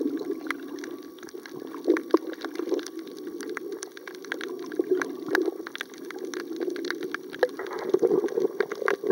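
Water murmurs in a steady, muffled underwater hush.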